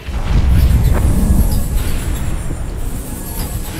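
A magical spell crackles and hums with a shimmering rush, then fades.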